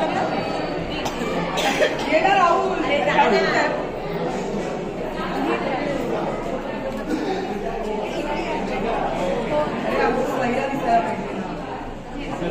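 A crowd of people chatter all around.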